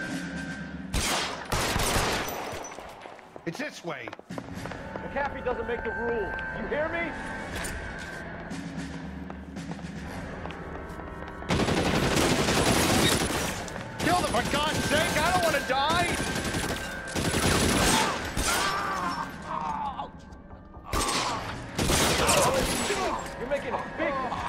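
Gunshots crack out in bursts.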